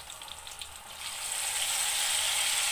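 Food drops into hot oil with a louder hiss.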